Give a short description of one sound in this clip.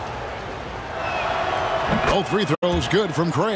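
An arena crowd cheers louder.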